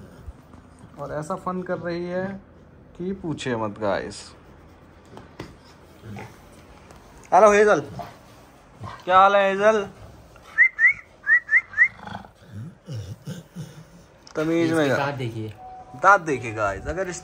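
A young man talks playfully and affectionately close by.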